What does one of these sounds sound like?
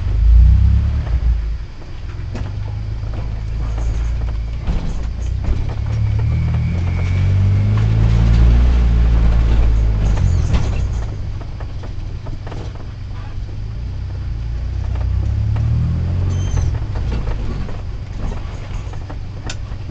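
A car engine hums low as the car creeps slowly along a narrow lane.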